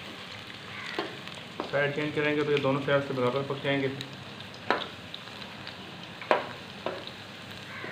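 A metal spoon clinks against a metal pan.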